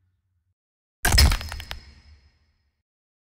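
A heavy metal foot crushes a skull with a sharp crunch.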